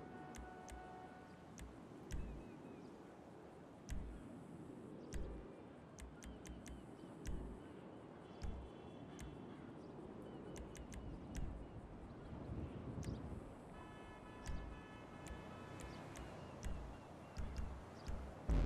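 Menu clicks tick sharply as options are scrolled and selected.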